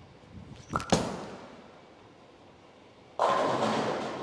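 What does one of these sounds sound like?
A bowling ball rolls down a lane.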